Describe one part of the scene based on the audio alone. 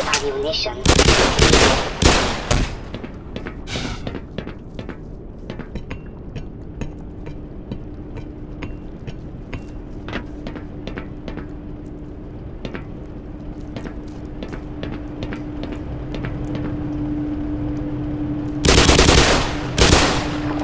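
Bursts of automatic gunfire ring out and echo.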